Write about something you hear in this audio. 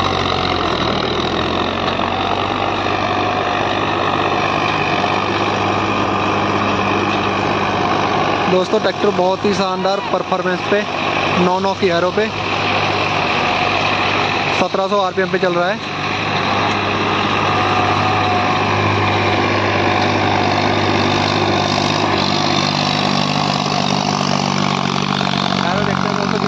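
A diesel tractor labours under load, pulling a disc harrow.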